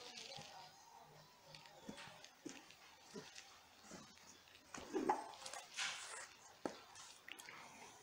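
Cards are laid down softly on a cloth.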